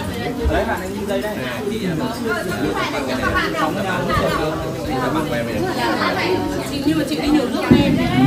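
A young woman talks and laughs close by.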